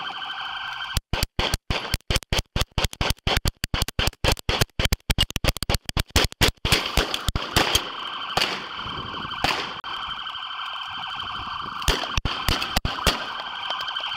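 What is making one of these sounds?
Rapid gunshots crack in a long burst close by.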